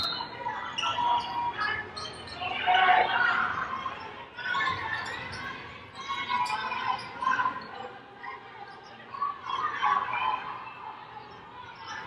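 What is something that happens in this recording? Sneakers squeak sharply in a large echoing hall.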